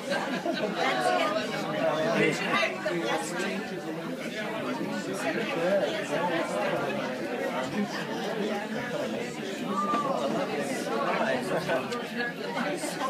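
Many people talk at once in a busy, crowded room.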